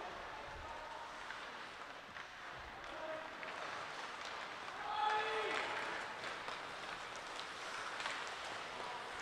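Ice skates scrape and hiss across the ice in a large echoing arena.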